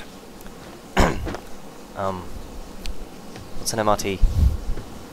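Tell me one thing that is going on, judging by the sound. A younger man speaks loudly.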